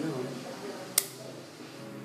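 An ear-piercing gun snaps with a sharp click.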